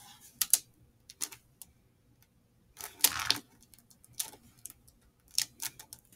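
Fingers rustle and crinkle a sheet of wax close by.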